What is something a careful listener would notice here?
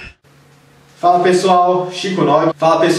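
A young man speaks calmly and clearly into a nearby microphone.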